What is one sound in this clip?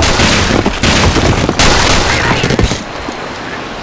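Wooden blocks crash and clatter loudly.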